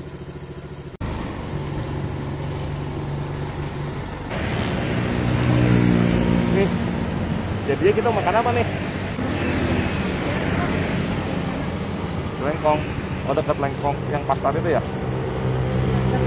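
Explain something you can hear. A motorcycle engine runs steadily while riding.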